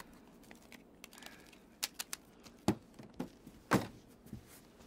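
Hard clicks and snaps come from a case being handled and latched.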